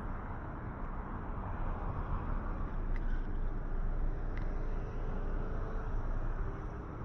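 A car engine hums as a car drives slowly past close by.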